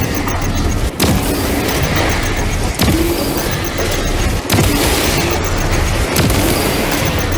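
A rifle fires loud single shots, one every couple of seconds.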